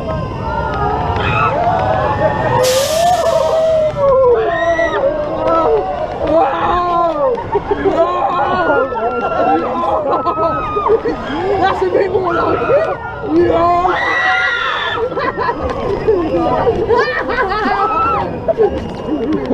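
A crowd of young riders screams and shrieks loudly close by.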